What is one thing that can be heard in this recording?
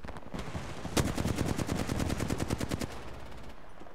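A rapid-fire gun fires long bursts of shots.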